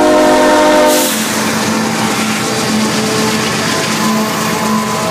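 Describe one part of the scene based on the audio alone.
A locomotive rumbles past close by.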